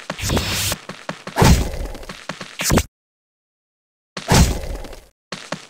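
Game skill effects whoosh and burst in quick bursts.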